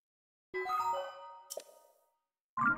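A bright electronic chime plays.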